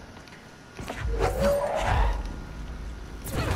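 A heavy wooden crate whooshes through the air.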